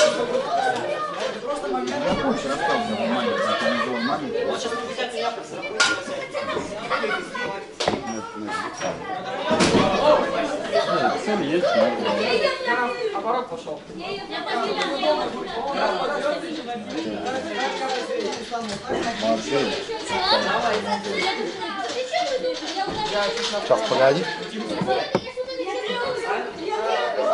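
Boys and young men talk and call out all around in an echoing hall.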